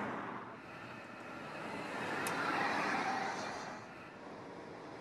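A car speeds past close by with a loud whoosh.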